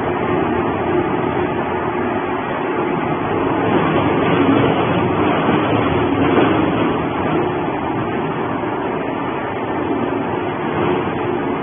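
A shredder machine grinds and roars steadily.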